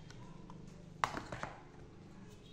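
A plastic bottle is set down with a light knock against a cardboard box.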